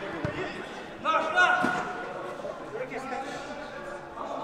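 Spectators call out and cheer loudly.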